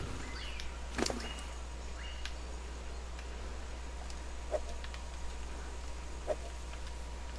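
Interface clicks sound sharply a few times.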